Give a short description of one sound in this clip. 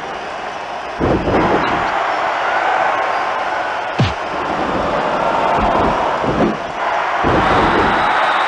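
Heavy blows and body slams thud loudly.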